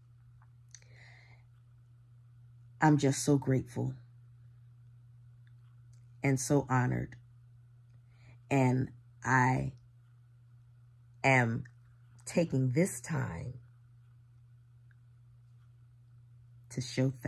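A woman speaks expressively in bursts, close to the microphone, with pauses between phrases.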